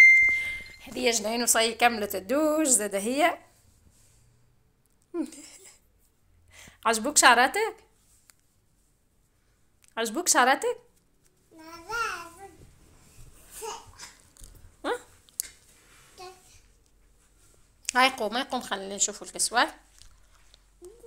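A little girl talks and babbles close by.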